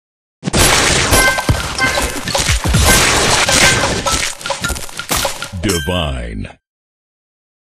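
Game sound effects burst and chime loudly as candies explode.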